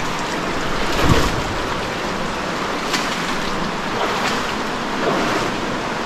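Water trickles steadily in an echoing cave.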